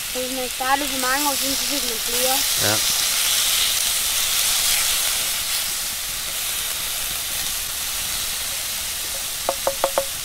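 A wooden spatula scrapes and taps across a metal pan.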